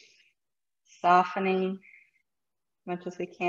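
A woman speaks calmly and slowly, close to a microphone.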